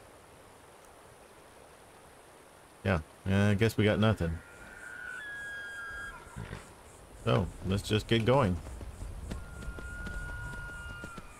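Horse hooves clop slowly on stone and dirt.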